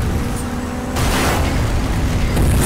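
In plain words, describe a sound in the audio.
A car crashes with a loud crunch.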